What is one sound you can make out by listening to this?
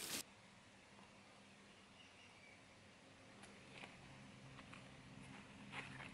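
Plastic wrapping crinkles as it is unwrapped.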